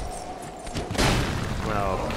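A heavy blow thuds against a shield.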